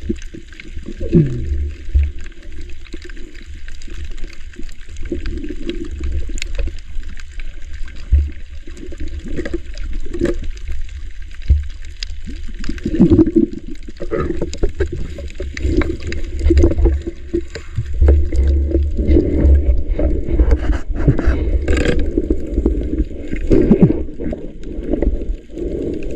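Water rumbles and swishes in a muffled way close by underwater.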